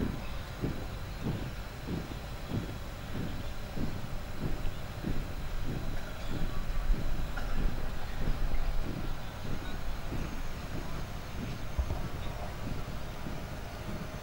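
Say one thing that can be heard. A column of marchers stamps in step, far off in the open air.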